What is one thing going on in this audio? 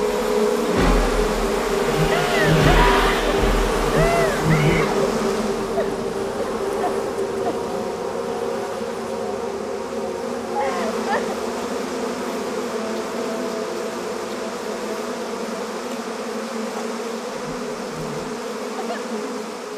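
A swarm of bees buzzes in a steady, dense drone.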